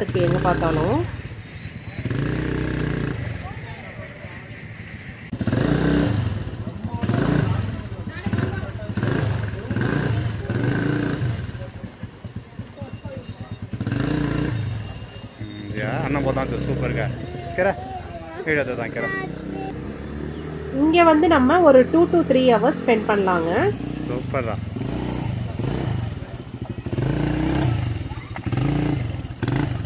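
A quad bike engine putters and revs as the bike drives slowly over dirt.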